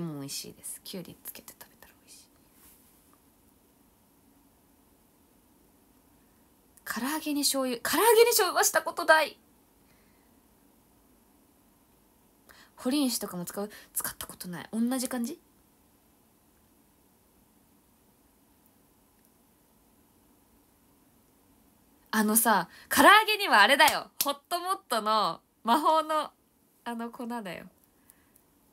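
A young woman speaks with animation close to a microphone, in bursts with pauses.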